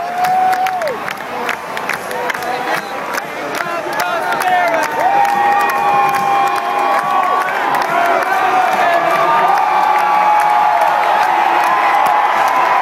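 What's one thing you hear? A marching band plays brass instruments.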